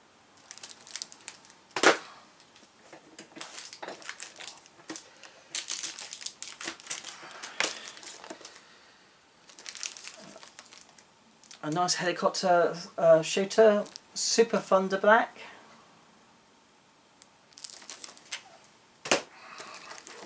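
Plastic items rustle and clatter as a man rummages nearby.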